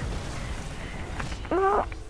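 Energy blasts crackle and burst.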